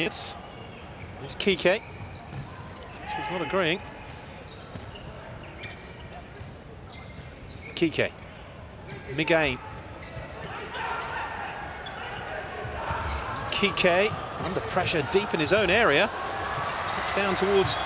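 A ball thuds as players kick it across the court.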